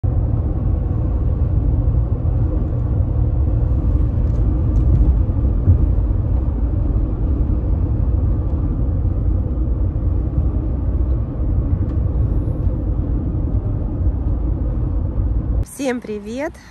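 A car's engine and tyres rumble low and steady from inside the car.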